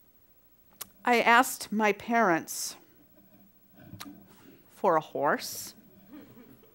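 A middle-aged woman speaks expressively through a headset microphone.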